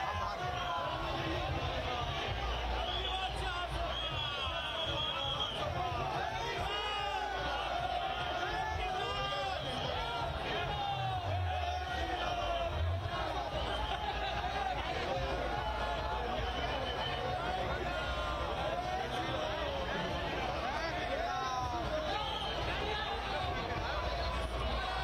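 A large crowd cheers and chants loudly outdoors.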